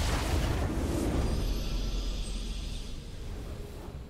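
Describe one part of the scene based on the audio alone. A triumphant game fanfare swells with a whoosh and slowly fades.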